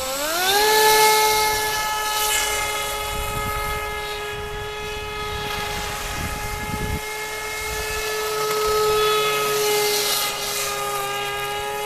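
Water splashes and hisses behind a speeding model boat.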